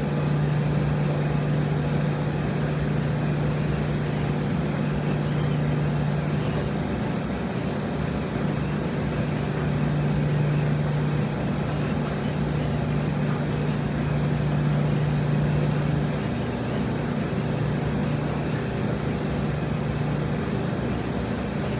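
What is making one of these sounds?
Clothes rustle as a person stuffs them into a front-loading washer.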